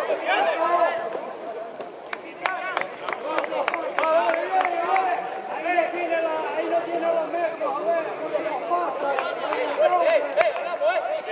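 Men shout and call out across an open outdoor pitch.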